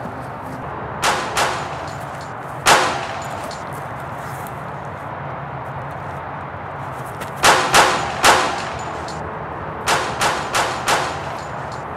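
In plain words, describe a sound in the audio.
Gunshots bang one after another, each with a short echo, outdoors.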